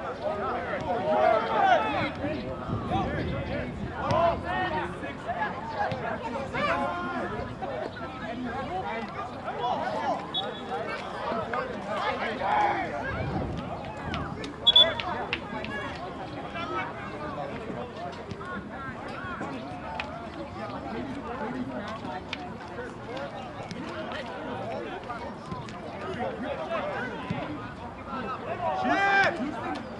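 Players shout to each other across an open field.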